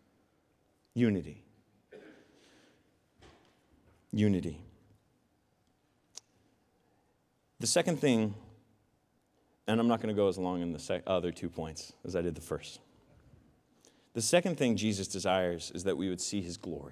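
A young man speaks calmly into a microphone, heard through loudspeakers with pauses.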